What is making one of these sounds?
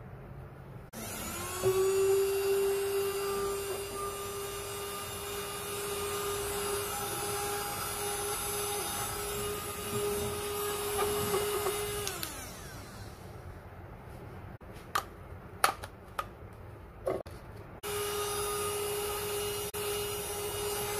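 A small handheld vacuum cleaner whirs steadily with a high hum.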